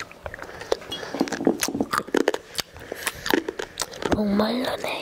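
A young girl makes soft clicking mouth sounds close to a microphone.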